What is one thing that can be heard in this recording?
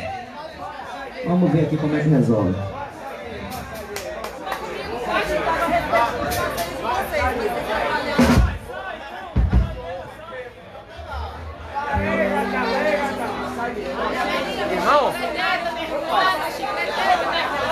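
A rock band plays loud live music with electric guitars and drums.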